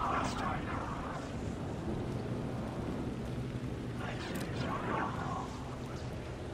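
A young man speaks briefly and quietly into a close microphone.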